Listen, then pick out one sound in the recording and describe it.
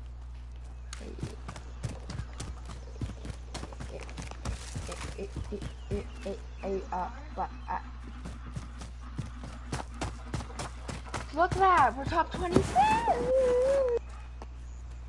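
Quick footsteps run over gravel and hard ground.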